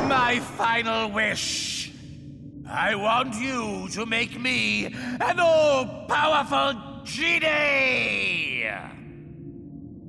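A man speaks loudly and theatrically, close by.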